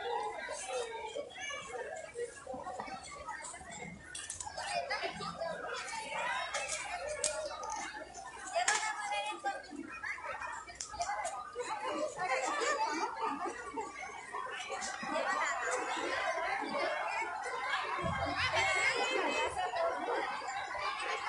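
A large crowd of men and women chatters loudly all around, heard close by.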